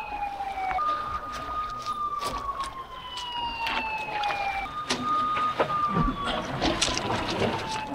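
A river flows and splashes nearby.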